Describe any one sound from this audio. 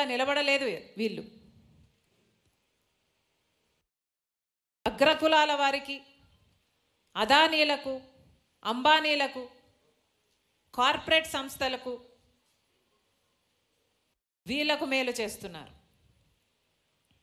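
A middle-aged woman speaks forcefully into a microphone in short bursts, heard through loudspeakers.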